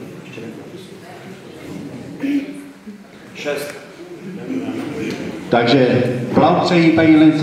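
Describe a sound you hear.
A man speaks into a microphone over a loudspeaker in an echoing hall.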